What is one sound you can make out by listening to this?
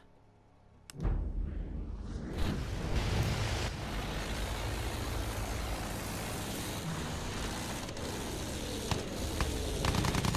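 A propeller plane's engine drones steadily with a low roar.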